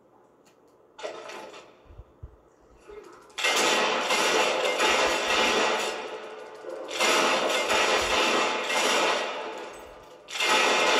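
Loud rushing game sounds play through a television speaker.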